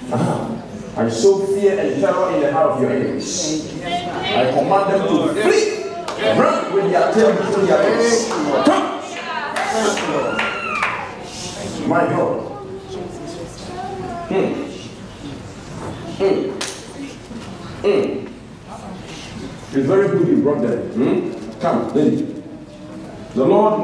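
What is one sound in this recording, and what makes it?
A crowd of men and women chatter and call out together nearby in a large echoing hall.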